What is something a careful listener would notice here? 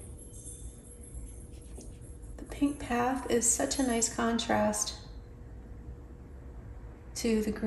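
A brush softly strokes paint onto paper.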